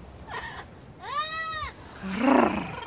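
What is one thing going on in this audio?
A parrot whistles a rising and falling tone.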